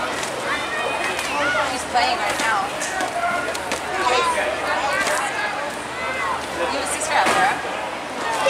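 Many young girls shout and cheer with excitement outdoors.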